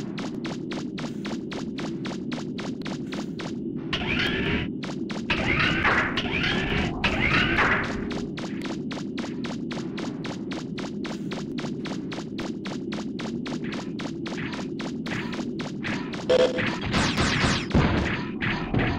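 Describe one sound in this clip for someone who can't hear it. Quick metallic footsteps patter steadily as a game character runs.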